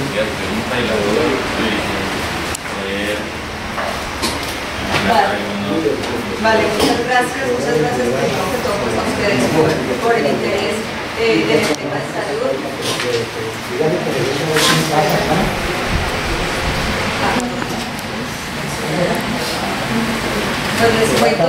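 A man speaks calmly in a room with some echo.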